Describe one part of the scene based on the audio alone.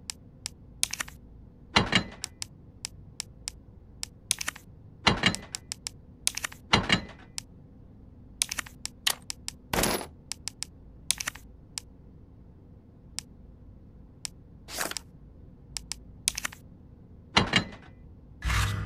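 Short menu clicks tick again and again as items are scrolled and picked.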